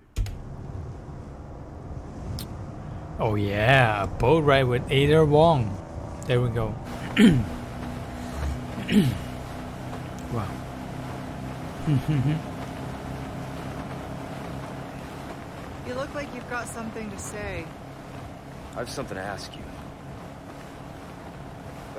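A motorboat engine drones steadily.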